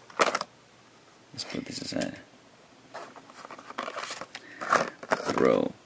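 A toy car is lifted and set down on a hard surface with a light knock.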